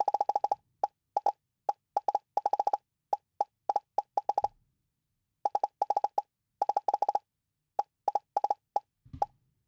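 A game blaster fires rapid short electronic zaps in bursts.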